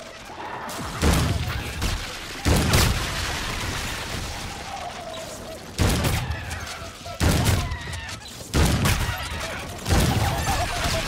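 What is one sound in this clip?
A gun fires loud single shots that boom and echo.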